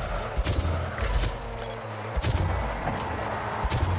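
A rocket boost roars as a car speeds up.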